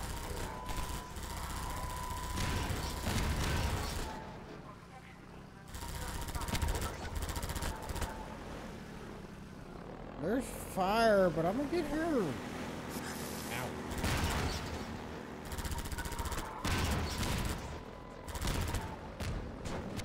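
A mounted gun fires in rapid bursts.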